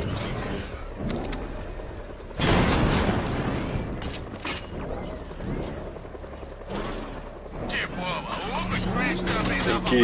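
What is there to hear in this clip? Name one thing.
A car engine rumbles and roars as it drives.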